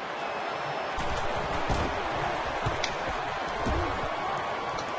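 Football players thud and collide as a play starts.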